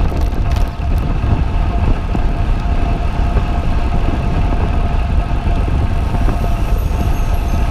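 Wind buffets the microphone with a loud, low rumble.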